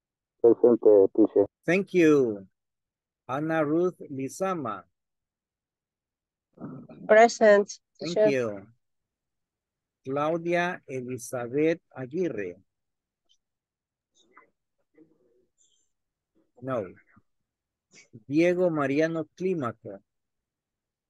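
An older man speaks calmly over an online call, in short bursts with pauses.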